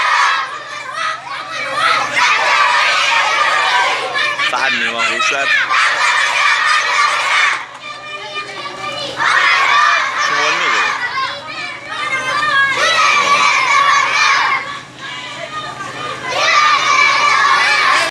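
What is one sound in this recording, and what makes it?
A crowd of young children chatter and shout loudly nearby.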